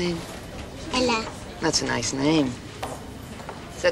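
A woman speaks calmly and warmly.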